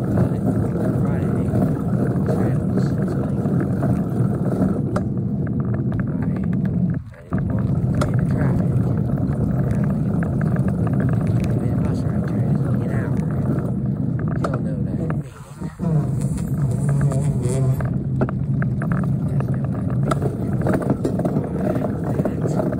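Tyres rumble steadily on asphalt.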